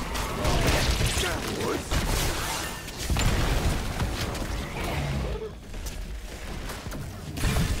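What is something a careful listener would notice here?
Magic spells and weapons clash and burst in a busy fantasy battle.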